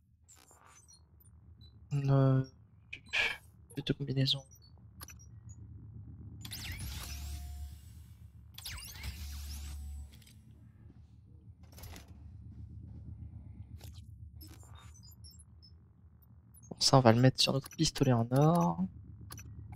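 Short electronic menu blips and clicks sound now and then.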